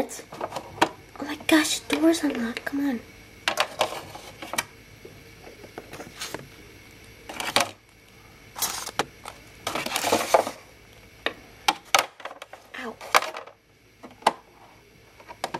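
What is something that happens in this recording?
A small plastic toy taps and clicks against a hard surface.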